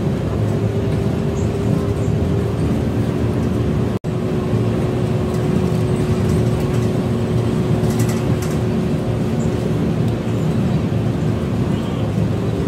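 A bus engine drones steadily with a low rumble while driving.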